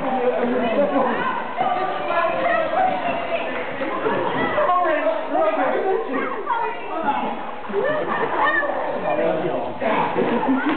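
Water splashes as a man wades through a pool.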